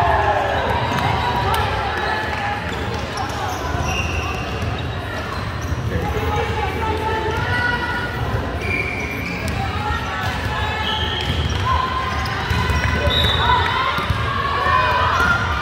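Many young women chatter and call out in a large echoing hall.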